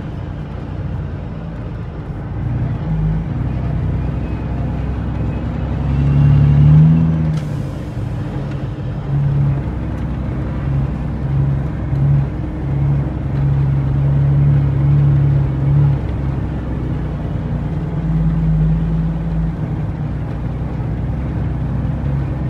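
A heavy vehicle's engine rumbles and drones steadily from inside the cab.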